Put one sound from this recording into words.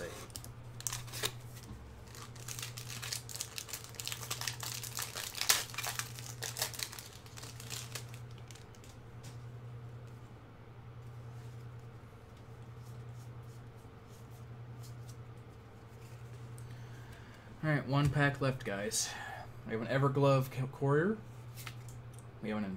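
Playing cards rustle and tap as a hand handles them.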